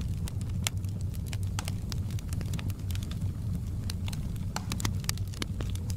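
A wood fire crackles and pops with sharp snaps.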